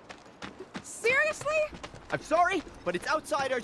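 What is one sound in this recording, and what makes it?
A young woman speaks in a lively, high voice.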